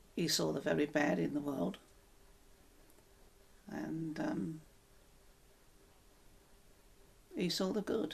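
An elderly woman speaks calmly and close by, in short phrases with pauses.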